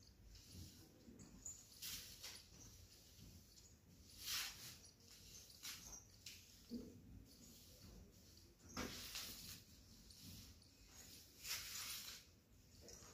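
A broom sweeps across a hard floor in soft swishes.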